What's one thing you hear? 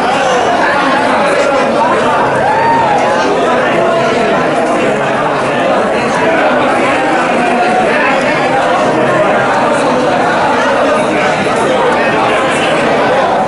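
A crowd of men and women chatter and call out loudly in a large echoing hall.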